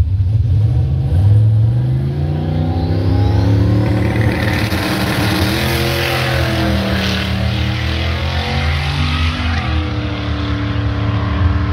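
A race car engine revs up and roars away, rising in pitch through the gears.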